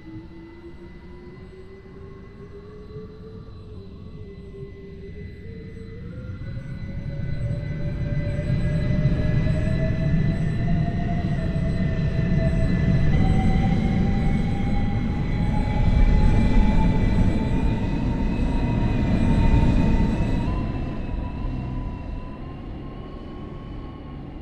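A train's electric motor whines, rising steadily in pitch as the train speeds up.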